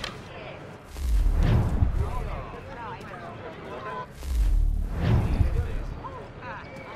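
A body lands with heavy thuds.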